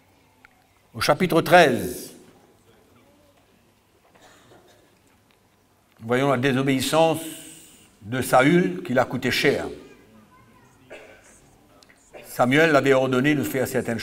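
An older man speaks slowly into a microphone, with long pauses, heard over a loudspeaker.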